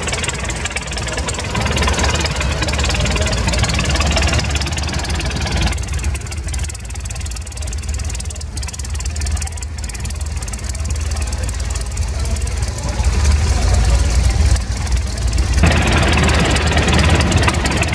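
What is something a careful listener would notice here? An old tractor engine idles with a steady low chugging.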